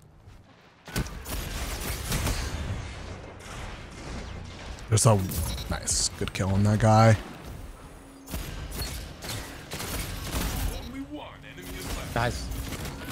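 Gunshots crack in quick bursts from a game.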